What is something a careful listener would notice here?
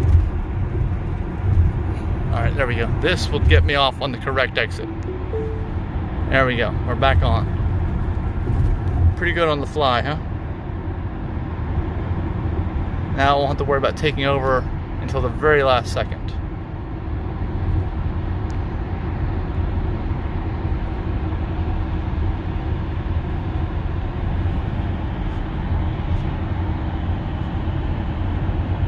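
A car hums steadily along a highway, with a low rumble of road noise from the inside.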